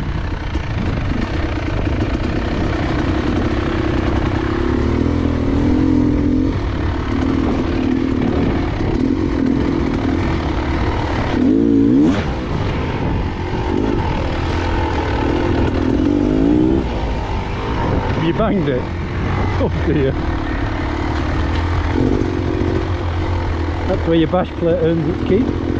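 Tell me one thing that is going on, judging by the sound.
A dirt bike engine revs and putters steadily up close, rising and falling in pitch.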